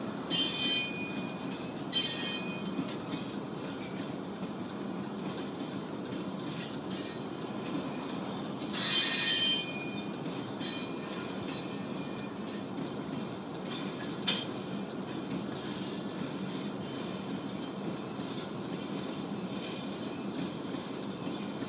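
A long freight train rumbles steadily past nearby.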